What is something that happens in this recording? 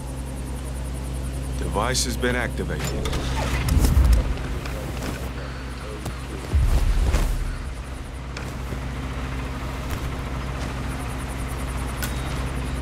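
A generator hums steadily nearby.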